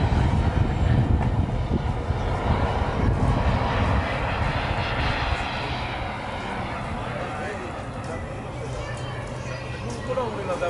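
A jet engine roars overhead and slowly fades.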